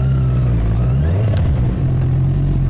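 A motorcycle engine briefly revs up and drops back.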